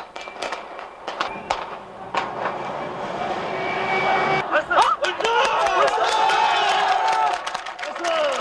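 A large crowd shouts and clamours outdoors.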